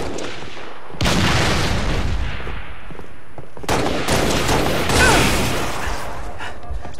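Loud weapon blasts boom and crackle in a video game.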